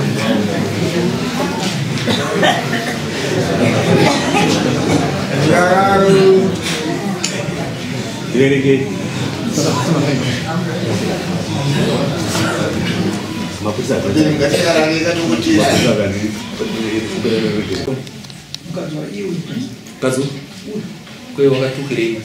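People in a crowd murmur and talk in a room.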